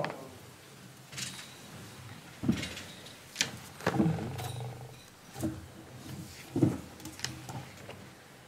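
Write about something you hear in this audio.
Chairs creak and knock as people sit down.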